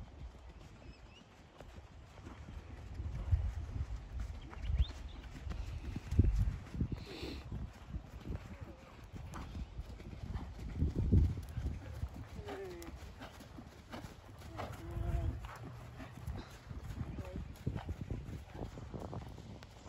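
A horse's hooves thud softly on sand in a steady rhythm.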